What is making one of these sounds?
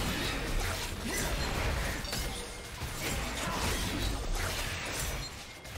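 Game spell and sword effects clash and crackle in a busy fight.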